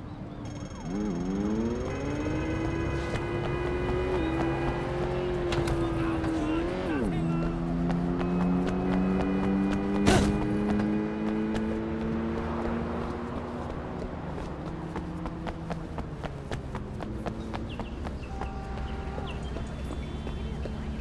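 Car engines hum and rev in the street.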